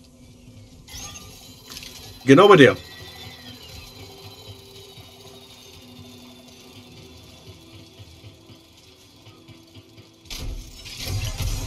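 A lightsaber ignites and hums steadily.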